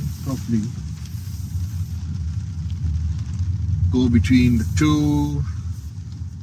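A man speaks briefly and calmly nearby inside a car.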